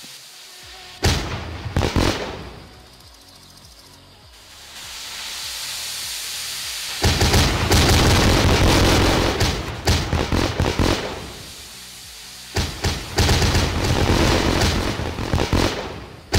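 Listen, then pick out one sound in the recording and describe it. Fireworks bang and crackle loudly in bursts.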